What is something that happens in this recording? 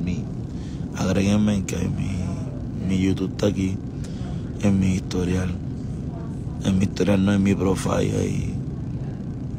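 A man talks close to a phone microphone in short bursts.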